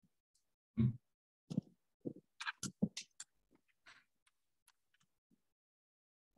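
Paper rustles as a sheet is lifted.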